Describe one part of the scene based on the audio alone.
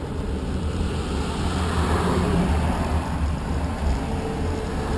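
A bus passes on the road.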